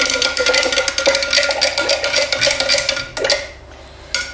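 A metal spoon stirs quickly in a glass jug of liquid, clinking against the glass.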